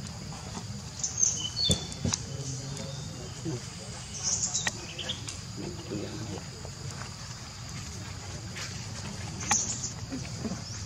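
A baby monkey squeals in short high cries.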